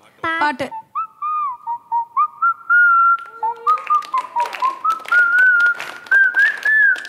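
A young boy whistles a tune into a microphone.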